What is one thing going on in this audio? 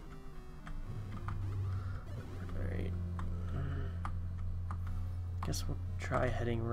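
Retro video game music plays.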